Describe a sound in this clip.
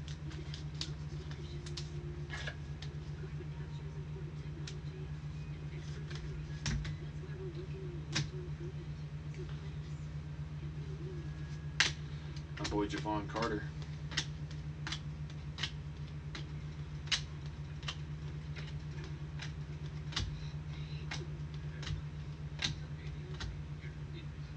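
Plastic sleeves and trading cards rustle and click as they are handled.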